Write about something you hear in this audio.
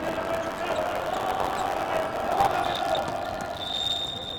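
Shoes squeak on a hard indoor court.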